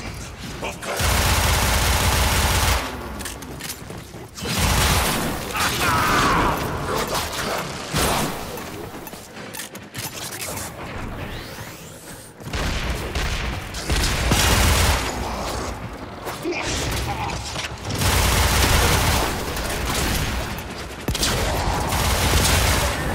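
Gunfire blasts in loud, heavy bursts.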